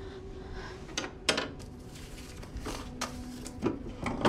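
Typewriter keys clack.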